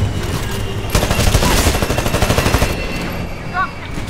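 A rifle fires rapid shots.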